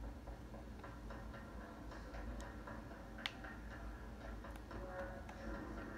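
A video game plays quietly through a television's speakers, with soft clicks and thuds.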